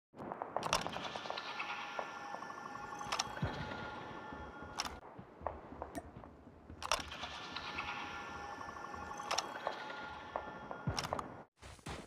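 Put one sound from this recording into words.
A gun's parts click and clatter as it is handled and reloaded.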